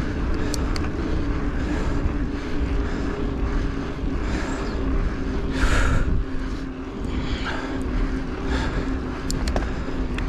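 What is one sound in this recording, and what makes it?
Bicycle tyres hum on smooth asphalt.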